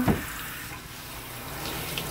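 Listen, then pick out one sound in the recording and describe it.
Water sprays from a shower head.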